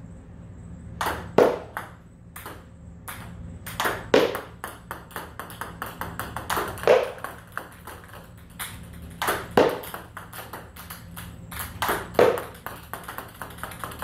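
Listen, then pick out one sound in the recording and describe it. A paddle strikes a ping pong ball with a hollow knock.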